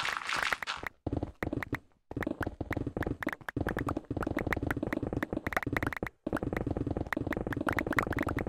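Stone blocks crumble and break with a dull crunch.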